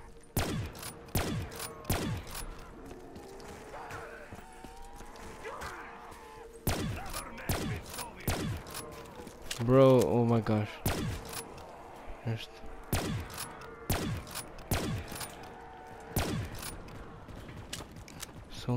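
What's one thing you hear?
A gun fires sharp shots again and again.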